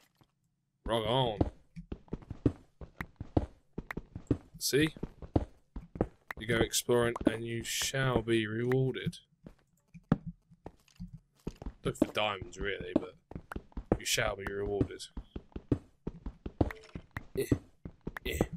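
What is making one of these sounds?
A pickaxe taps rapidly at stone and breaks blocks.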